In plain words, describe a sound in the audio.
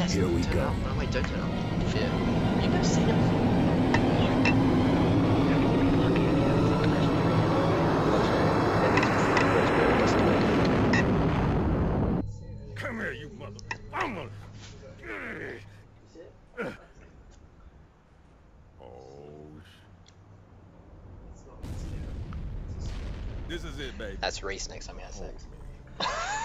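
Two young men talk and laugh into a microphone.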